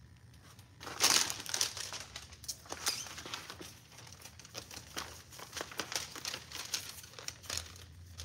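Paper labels rustle and crinkle as they are unrolled by hand.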